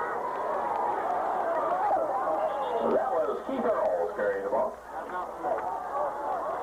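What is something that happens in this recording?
A large crowd outdoors cheers and shouts.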